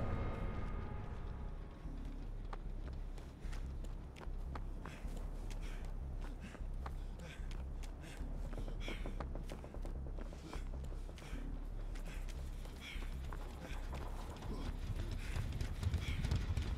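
Footsteps run quickly over dirt and boards.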